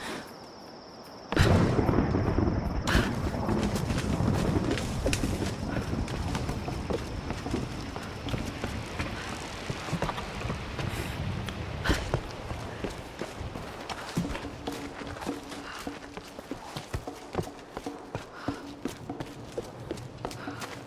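Footsteps patter quickly on stone and earth.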